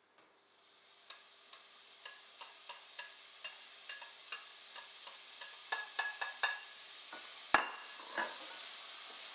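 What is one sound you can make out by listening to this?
A spatula scrapes and taps against a metal pan.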